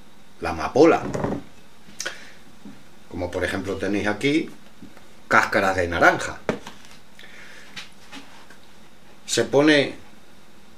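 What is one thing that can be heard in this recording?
A middle-aged man talks calmly and close by, with pauses.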